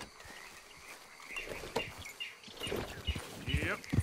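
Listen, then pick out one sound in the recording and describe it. A horse's hooves thud softly on grass.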